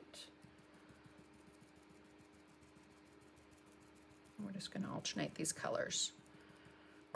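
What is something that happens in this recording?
A brush dabs and scrubs softly on paper.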